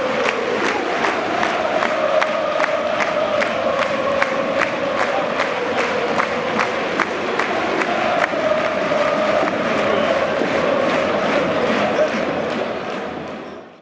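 A large stadium crowd sings loudly in unison.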